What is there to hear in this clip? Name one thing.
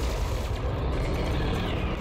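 Laser cannons fire in short bursts.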